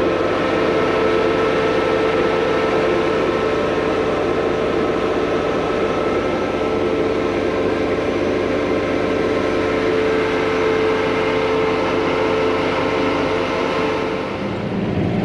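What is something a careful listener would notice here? A heavy diesel engine rumbles steadily.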